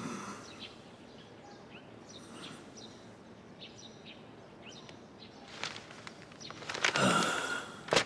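Newspaper pages rustle softly.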